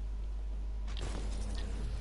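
Gunshots ring out in a video game.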